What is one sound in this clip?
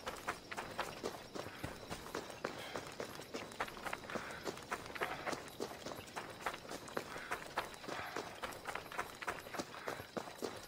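Quick footsteps run on gravel and dirt.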